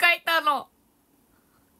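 A young woman speaks brightly and close up.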